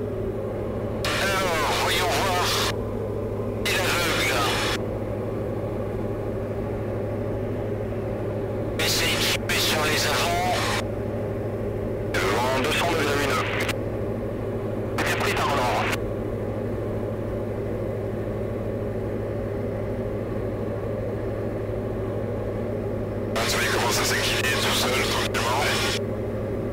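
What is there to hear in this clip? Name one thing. A man speaks calmly in short bursts over a headset intercom.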